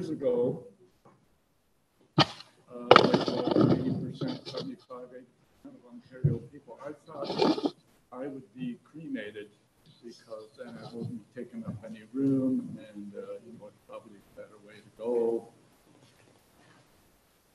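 An elderly man speaks slowly into a microphone in an echoing room.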